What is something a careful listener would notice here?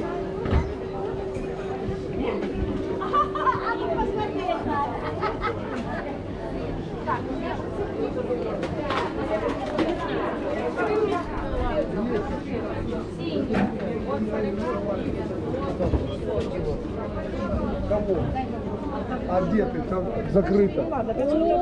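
A crowd of men and women chatter all around at close range.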